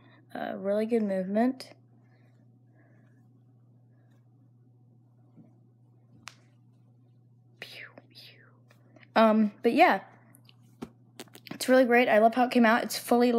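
A fuzzy glove rustles softly against bedsheets.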